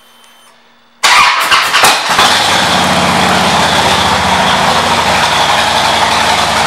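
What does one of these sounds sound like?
A motorcycle engine starts and runs with a loud, steady rumble.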